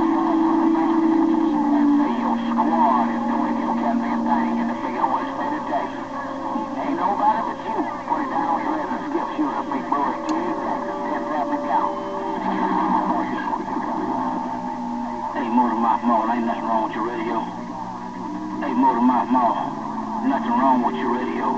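A CB radio plays crowded, distorted transmissions through its loudspeaker.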